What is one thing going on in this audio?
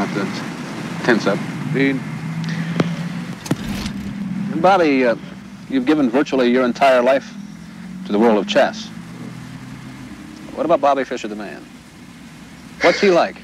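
A young man speaks calmly and thoughtfully, close by.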